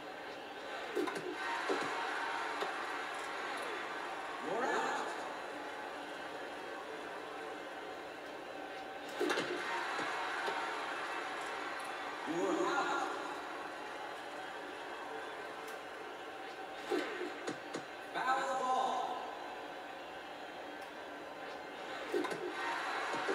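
A bat cracks against a ball, heard through a television speaker.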